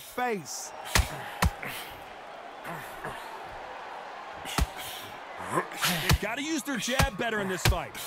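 Gloved punches land with sharp thuds.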